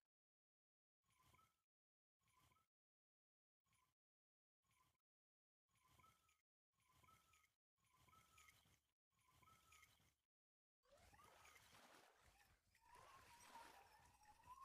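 A fishing reel clicks and whirs in short bursts of cranking.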